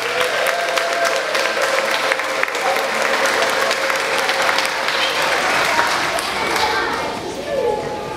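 Many people clap and applaud.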